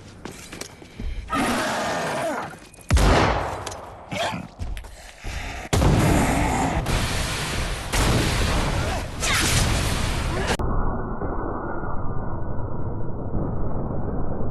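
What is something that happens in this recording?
Zombies groan and snarl.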